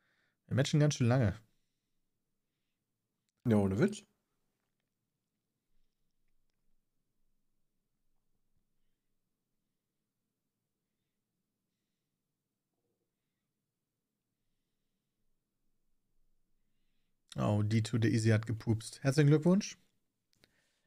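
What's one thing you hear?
A man talks calmly and close into a microphone, in short bursts with long pauses.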